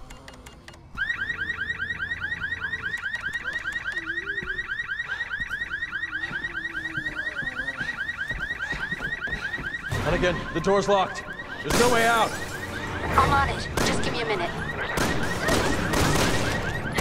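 An alarm beeps rapidly and steadily.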